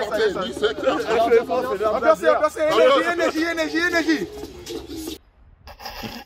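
A group of young people sings together outdoors.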